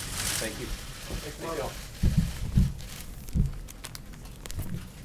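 A woman speaks calmly, heard through a microphone.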